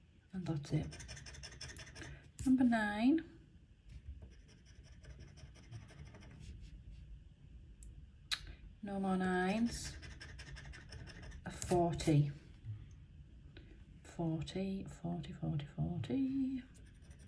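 A tool scratches across a scratch card with a dry, rasping sound.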